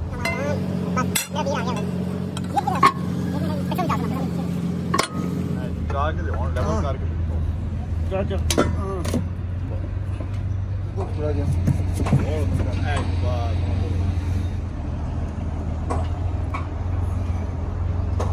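Metal wrenches clank against steel fittings.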